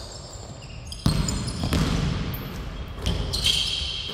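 A basketball bounces on a hardwood floor in a large echoing hall.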